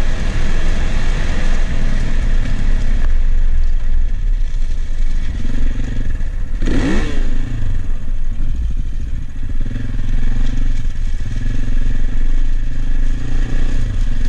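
A motorcycle engine hums steadily, rising and falling as the rider speeds up and slows down.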